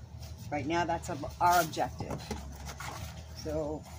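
Cardboard rustles and flaps as it is folded.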